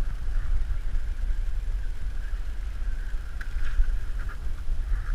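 Small waves slap against a boat's hull.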